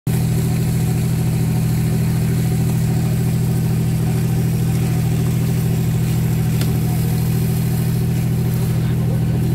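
A boat engine drones steadily and loudly.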